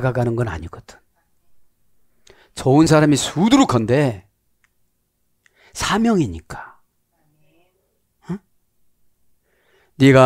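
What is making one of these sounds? A middle-aged man speaks with animation into a headset microphone, in short bursts with pauses.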